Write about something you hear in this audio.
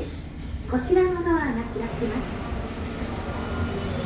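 Elevator doors slide with a low rumble.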